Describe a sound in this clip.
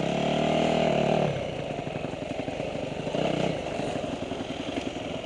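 A motorcycle engine revs loudly close by, then drops to a rough, pulsing putter.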